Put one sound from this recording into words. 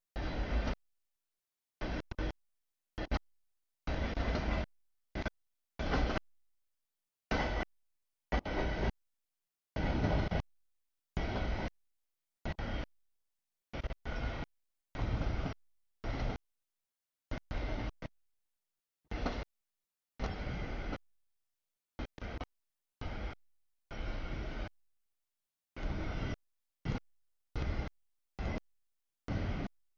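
A freight train rumbles and clatters past.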